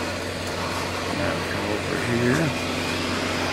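An elderly man speaks briefly, close by.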